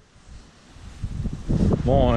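A young man speaks close to the microphone.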